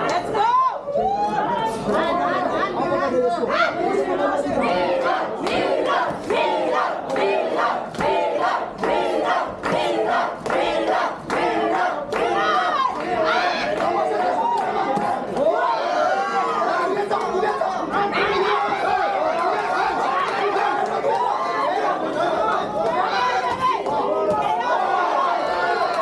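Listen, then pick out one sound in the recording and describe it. A crowd of young men and women shouts and cheers close by.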